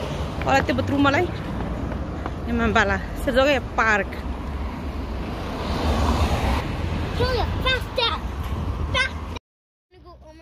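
A young woman talks close up, outdoors in wind.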